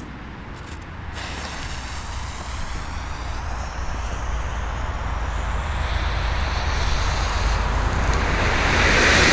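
A firework fuse fizzes and hisses steadily.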